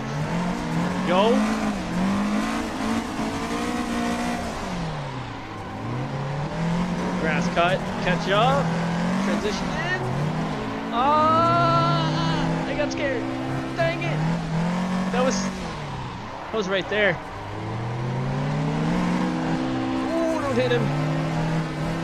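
Tyres squeal as a car slides sideways.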